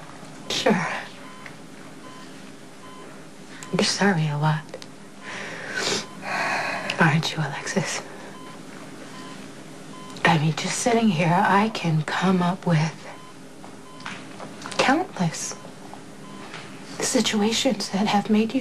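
A young woman speaks softly and emotionally close by.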